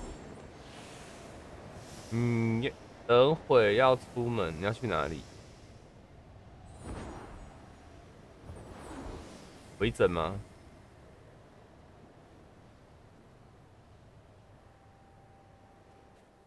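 Wind rushes past in soft gusts.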